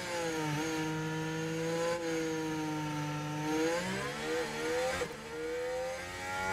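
A racing car engine roars steadily, its pitch shifting as it changes gear.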